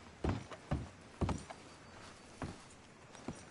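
Boots thud on wooden planks.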